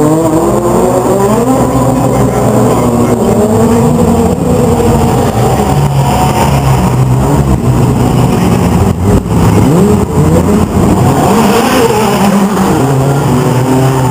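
Many racing car engines rumble and rev loudly throughout.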